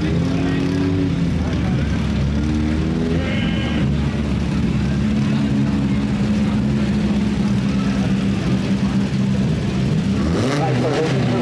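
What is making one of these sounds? A race car engine idles with a deep, rough rumble.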